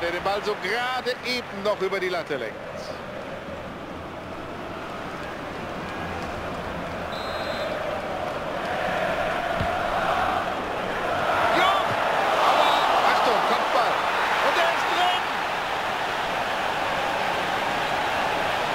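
A large stadium crowd roars, swelling louder as a goal is scored.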